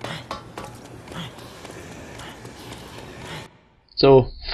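Footsteps walk along a hard floor.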